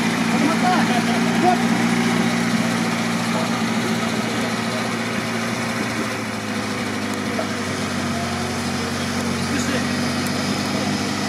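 An off-road vehicle's engine runs steadily, straining in deep mud.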